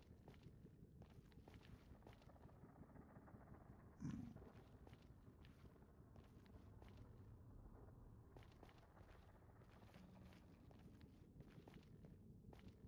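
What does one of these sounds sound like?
Footsteps crunch steadily on rough stone.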